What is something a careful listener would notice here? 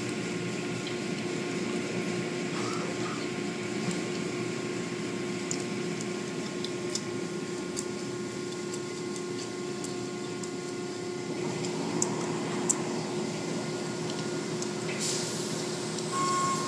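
Water and foam spray down onto a car.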